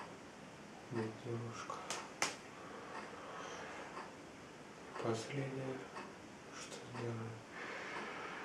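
A man speaks briefly in a low voice close by.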